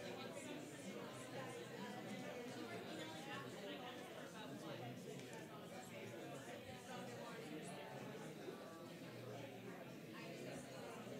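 Many people murmur in a large room.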